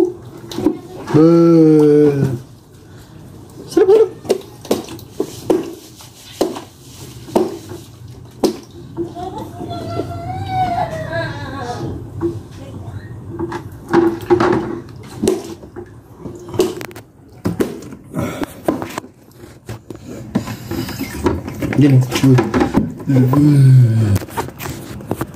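A small child babbles and cries out.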